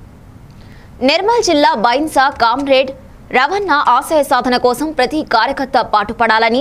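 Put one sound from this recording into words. A young woman reads out the news clearly into a microphone.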